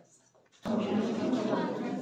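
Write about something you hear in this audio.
A group of people talk nearby.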